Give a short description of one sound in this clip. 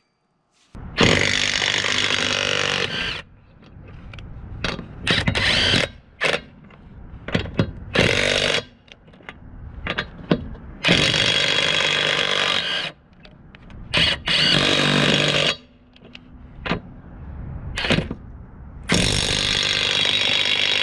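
An impact wrench hammers loudly in short, rattling bursts.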